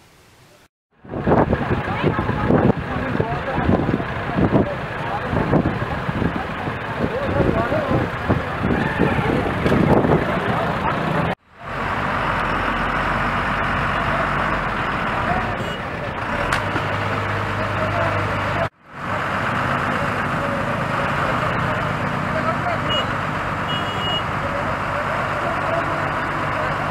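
A crowd of men talk and call out loudly outdoors.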